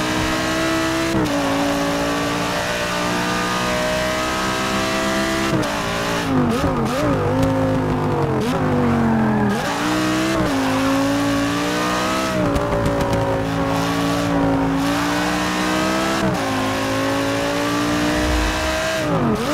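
A race car engine roars at high revs, its pitch rising through each gear and dropping sharply at every shift.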